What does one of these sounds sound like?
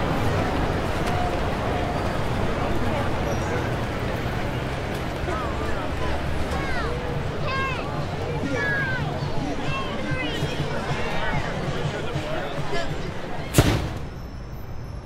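A dense crowd chatters and murmurs all around.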